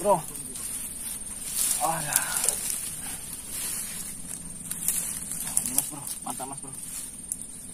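Dry leaves and twigs rustle and crunch underfoot.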